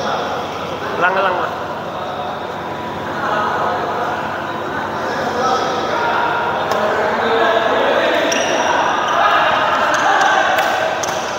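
Badminton rackets smack a shuttlecock back and forth in a large echoing hall.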